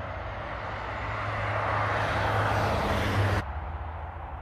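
A car drives by on a road.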